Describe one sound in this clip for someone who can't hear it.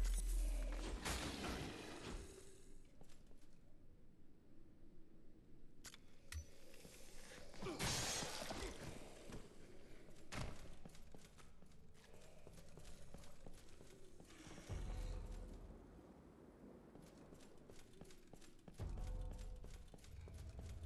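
Heavy footsteps clank on stone.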